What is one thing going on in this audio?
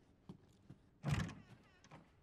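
A heavy wooden door thuds open.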